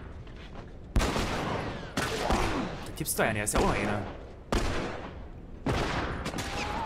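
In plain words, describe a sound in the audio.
Gunshots ring out loudly, one after another, with a short echo.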